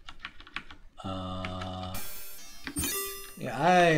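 A computer game sounds a low buzzing tone for a wrong answer.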